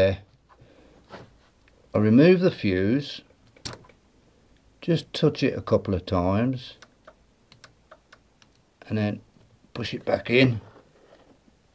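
Plastic wire connectors click and rustle as they are pushed together.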